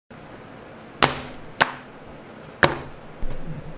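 Objects knock sharply on a wooden table a few times.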